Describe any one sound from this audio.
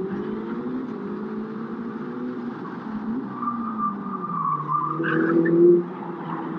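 A racing car engine roars and changes pitch as the car speeds along.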